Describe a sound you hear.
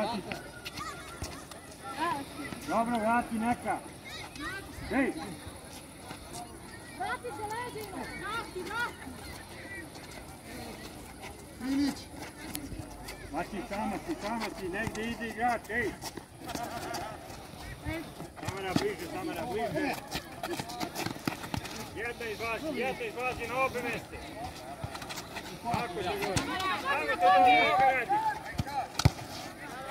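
Young players shout to each other outdoors.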